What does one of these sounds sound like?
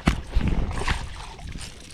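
A fishing reel clicks as it winds in line.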